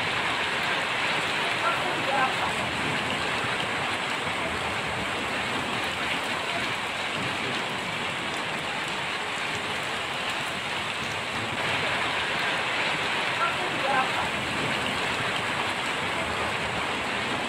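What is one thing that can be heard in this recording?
Heavy rain and hail pour down steadily outdoors.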